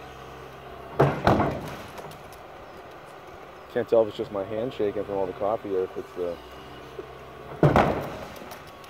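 An excavator bucket bangs loudly against a concrete silo.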